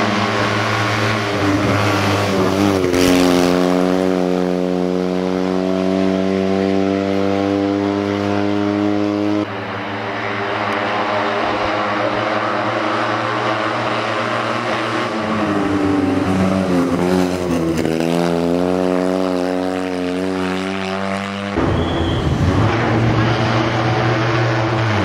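A small car engine revs hard and roars past at close range.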